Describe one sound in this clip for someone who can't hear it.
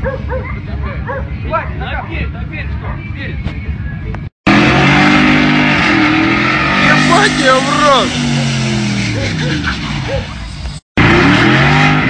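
A car engine revs hard as its wheels spin in mud.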